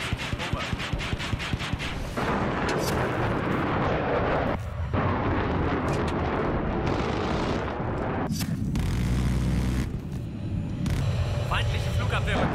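A jet fighter's engine roars.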